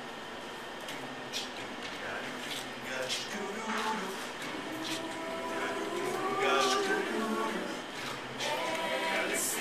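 A choir of young singers sings together outdoors.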